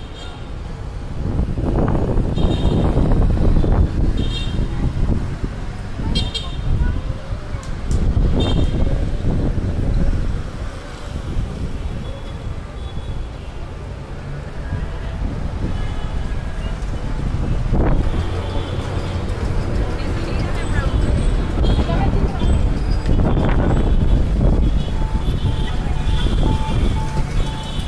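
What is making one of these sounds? Street traffic and engines rumble steadily outdoors.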